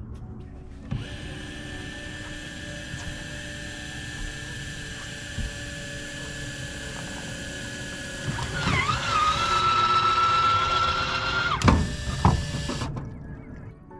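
An electric boat motor hums steadily with a high whine.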